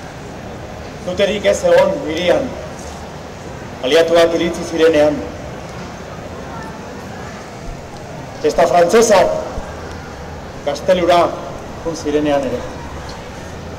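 A man sings loudly in short phrases, heard from a distance.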